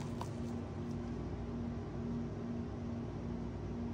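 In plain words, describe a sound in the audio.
Thick paint pours slowly from a cup.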